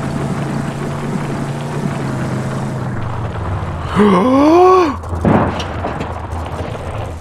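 A game vehicle's engine drones steadily.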